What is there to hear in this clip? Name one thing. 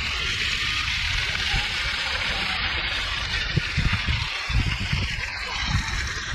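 Fountain jets spray and splash steadily onto wet paving.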